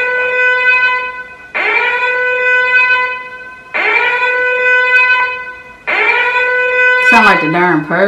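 Music plays through a loudspeaker in long, held notes that swell again and again.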